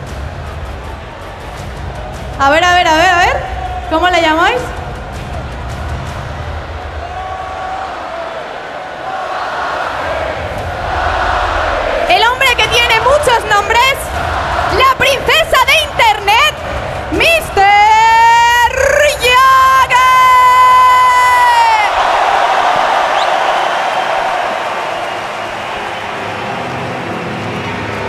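A large crowd cheers and roars.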